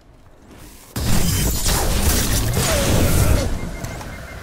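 An electric energy blast crackles and roars.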